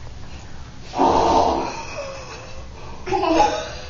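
Small children giggle and laugh close by.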